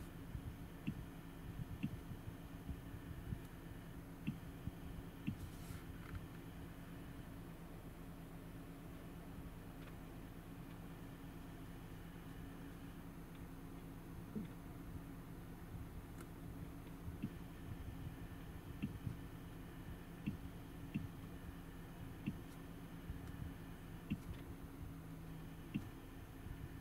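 A finger taps on a touchscreen.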